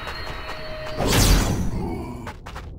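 A sword strikes a monster with a heavy whoosh and impact.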